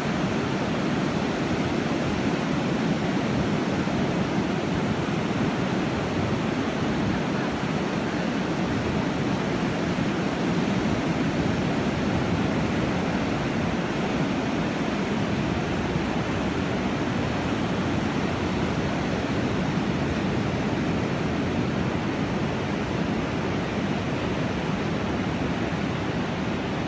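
Ocean waves break and wash steadily onto a shore.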